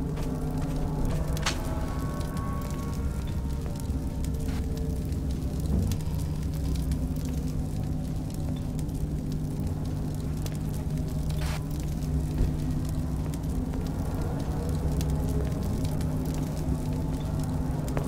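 Footsteps tread slowly on a hard tiled floor.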